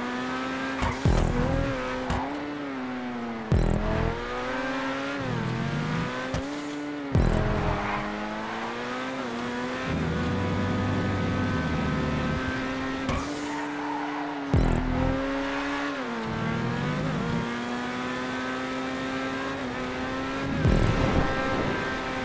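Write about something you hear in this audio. A race car's gearbox shifts with sharp pops from the exhaust.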